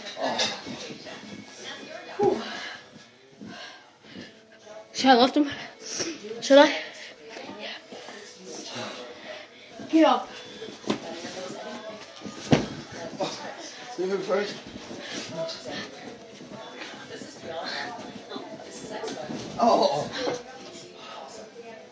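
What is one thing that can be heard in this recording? Bodies thump onto a soft mattress.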